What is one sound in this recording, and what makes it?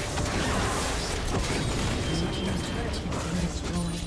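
A turret crumbles with a heavy crash.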